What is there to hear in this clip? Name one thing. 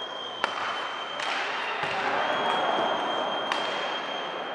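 A hockey stick strikes a puck with a sharp crack.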